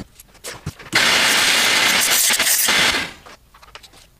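A shop vacuum roars.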